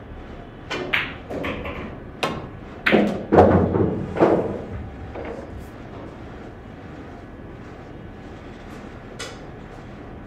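Pool balls clack sharply against each other.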